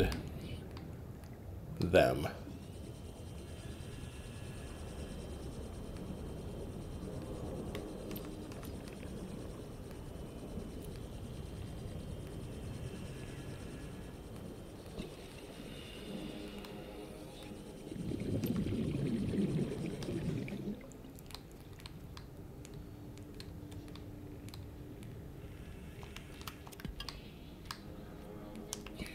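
Water rushes and gurgles around a moving underwater craft.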